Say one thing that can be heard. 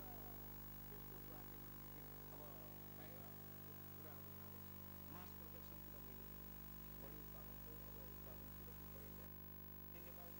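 Porcelain bowls ring with soft, high tinkling notes as they are struck.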